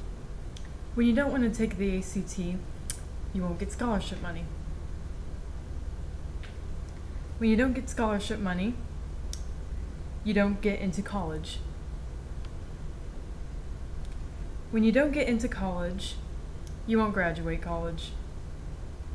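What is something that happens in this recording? A young man speaks calmly close to a microphone, in short phrases.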